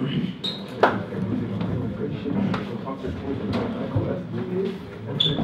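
Young men talk and chatter close by in a small room.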